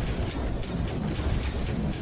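A mining laser buzzes steadily as it cuts into rock.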